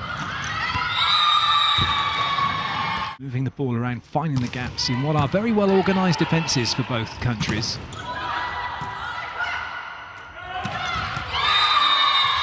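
A volleyball is struck hard several times.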